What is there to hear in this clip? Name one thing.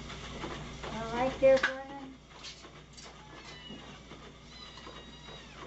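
Bowls clatter on a counter.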